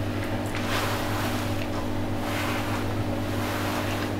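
A woman crunches on a cracker.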